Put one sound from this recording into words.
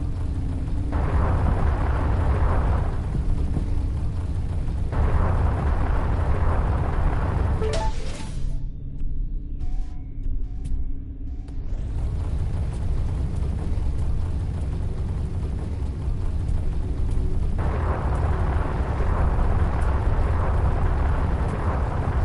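Engine thrusters surge in loud bursts of rushing noise.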